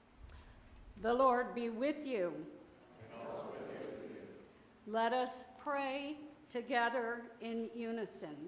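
A middle-aged woman chants through a microphone.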